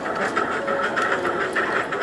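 A drawing machine clicks and whirs through a television speaker.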